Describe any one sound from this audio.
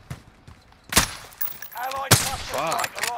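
A sniper rifle fires a sharp shot.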